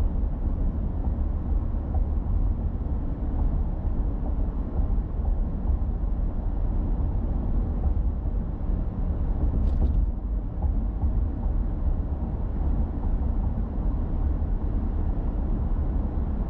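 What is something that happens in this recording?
Tyres roll with a low, steady rumble on asphalt.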